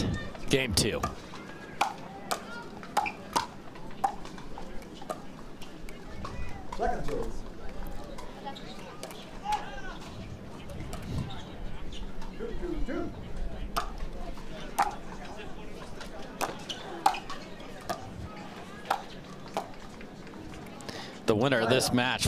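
Paddles pop against a ball in a quick rally.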